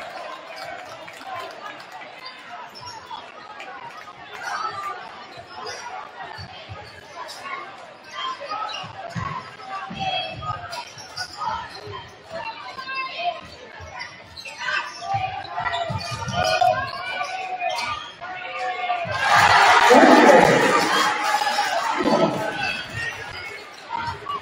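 A crowd murmurs and chatters in a large echoing gym.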